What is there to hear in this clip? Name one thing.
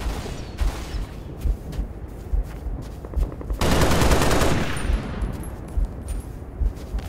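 A rifle fires repeated single shots.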